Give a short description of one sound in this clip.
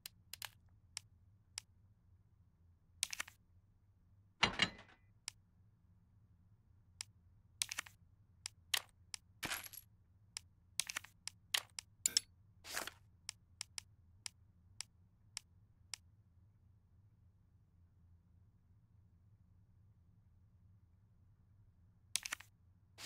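Short menu clicks and beeps sound as items are picked and moved.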